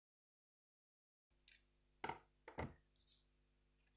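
Scissors snip.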